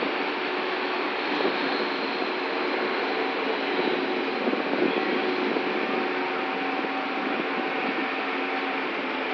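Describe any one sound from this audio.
A crane engine hums steadily outdoors.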